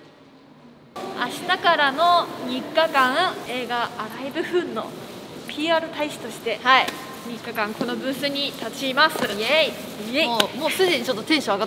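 Two young women talk with animation, close by.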